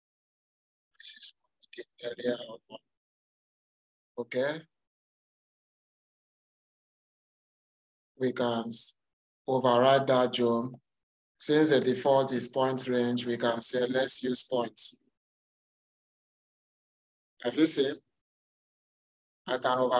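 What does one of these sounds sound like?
A young man speaks calmly through a microphone, in short bursts with pauses.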